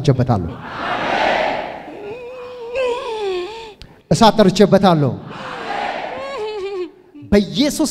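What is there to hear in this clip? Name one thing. A large crowd cheers and shouts in response.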